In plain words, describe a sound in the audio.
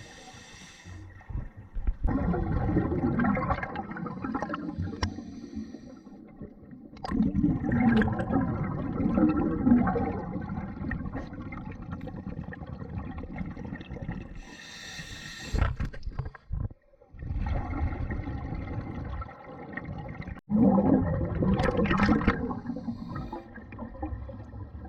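Water rushes muffled around an underwater microphone.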